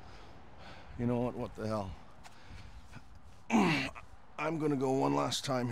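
A young man grunts and shouts loudly with effort.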